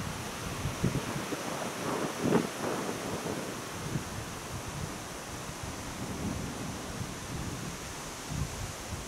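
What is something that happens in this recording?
Wind gusts outdoors and buffets the microphone.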